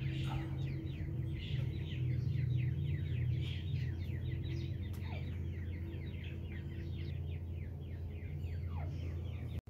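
Small chicks cheep rapidly and constantly, close by.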